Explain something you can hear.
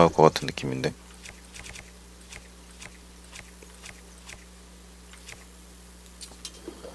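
Soft clicks tick quickly one after another as a game menu scrolls.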